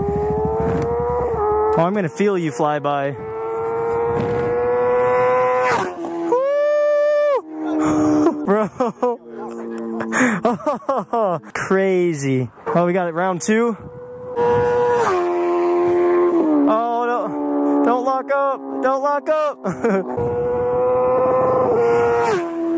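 A motorcycle engine roars and revs up and down close by.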